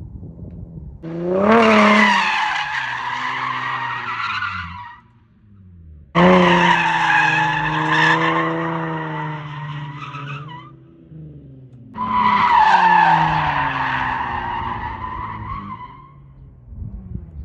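A car engine revs hard in loud, repeated bursts.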